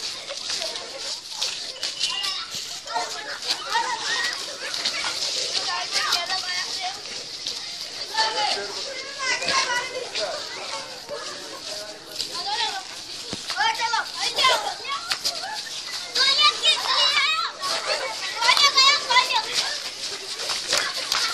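Children shout and laugh excitedly nearby, outdoors.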